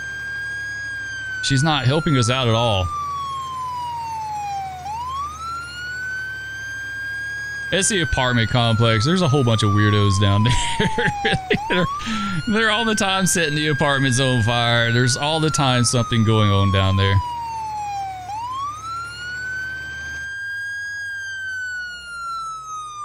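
A siren wails, rising and falling in slow sweeps.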